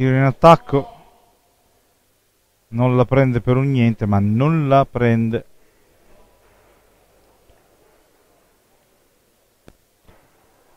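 Billiard balls knock against each other and the cushions.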